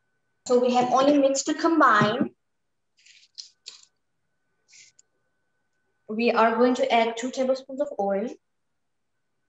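A woman talks calmly and clearly into a microphone, heard as if through an online call.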